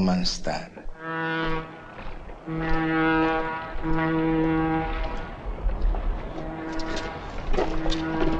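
A ship's steam whistle blows a long, steady note.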